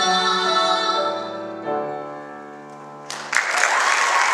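A woman sings along with a piano.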